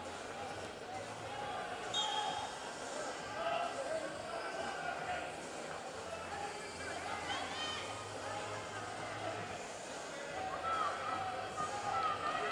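Adults shout and call out from the sidelines of a large, echoing hall.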